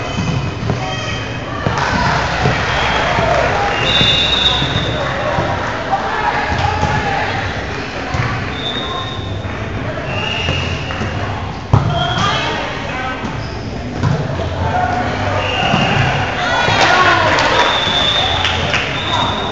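Players shout and call out in a large echoing gym.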